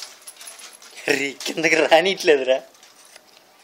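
A small puppy yelps and whines.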